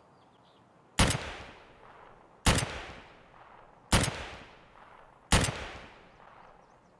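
Rifle shots ring out one at a time, each echoing briefly.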